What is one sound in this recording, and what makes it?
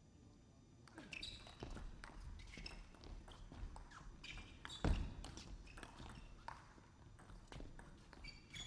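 Sports shoes squeak on the floor.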